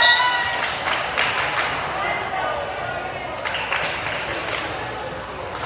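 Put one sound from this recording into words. Hands clap in quick bursts.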